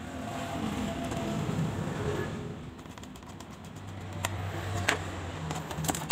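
A screwdriver scrapes and clicks against a phone's frame.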